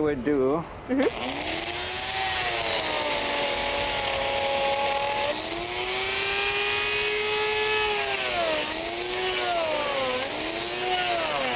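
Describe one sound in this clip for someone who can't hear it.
A power grinder whines loudly, cutting into ice.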